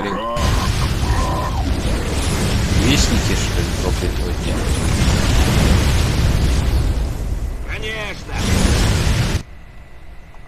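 Guns fire rapidly in a battle.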